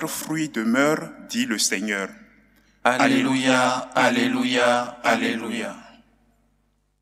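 A young man sings into a microphone in a room with a slight echo.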